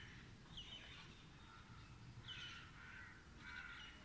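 Birds chirp nearby outdoors.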